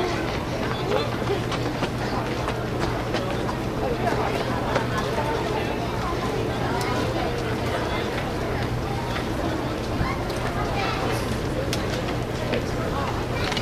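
A marching band plays brass and drums outdoors.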